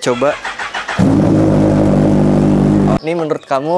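A second sports motorcycle engine idles and revs loudly.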